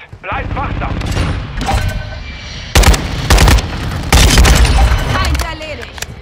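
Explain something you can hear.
Rifle shots crack in loud bursts.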